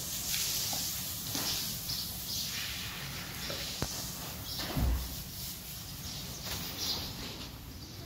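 A hose sprays water that splashes onto a horse and the floor.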